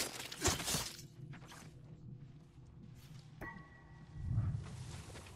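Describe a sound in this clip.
Tall grass rustles as someone moves through it.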